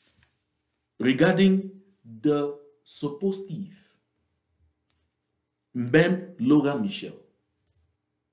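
A man speaks calmly and clearly into a microphone, pausing between phrases.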